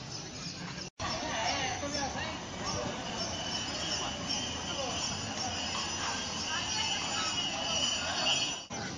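A horse's hooves clop on pavement.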